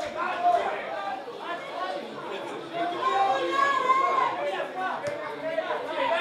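Men close by talk and call out among a small crowd.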